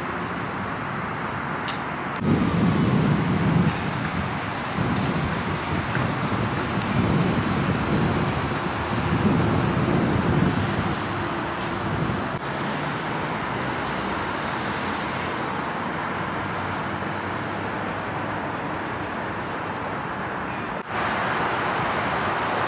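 Wind gusts outdoors.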